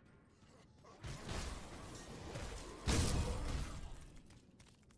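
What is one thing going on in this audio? Magic blasts roar and crackle.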